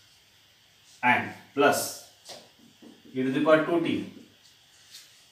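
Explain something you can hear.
A man speaks calmly, explaining.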